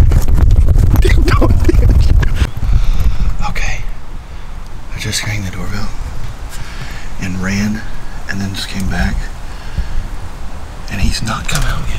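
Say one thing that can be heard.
A middle-aged man talks with animation close to the microphone.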